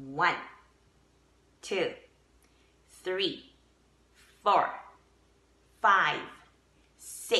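A middle-aged woman speaks close up in short, lively bursts with pauses between them.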